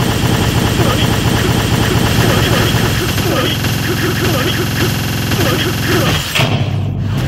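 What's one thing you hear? Rapid hits crack and thud in quick succession.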